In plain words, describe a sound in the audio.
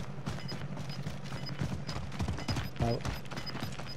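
A rifle clatters as it is swung and lowered.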